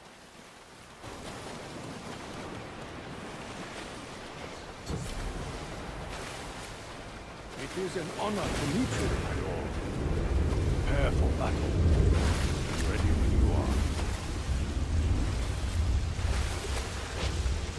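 Wind gusts and roars outdoors.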